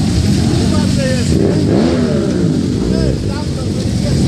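Motorcycle engines rev up with rising whines.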